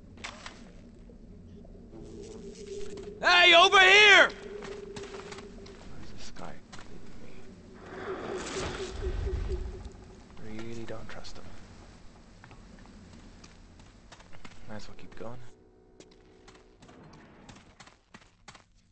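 Footsteps walk steadily over grass and stone.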